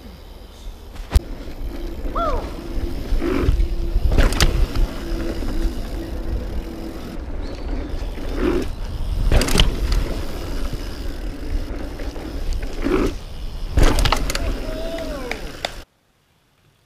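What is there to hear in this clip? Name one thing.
Bicycle tyres roll fast over a dirt trail.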